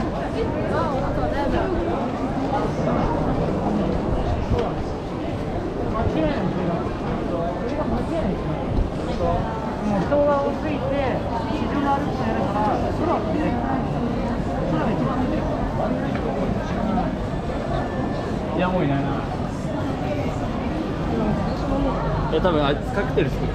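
A crowd of people chatter all around on a busy street.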